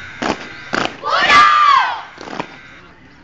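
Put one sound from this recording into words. A man shouts a drawn-out drill command.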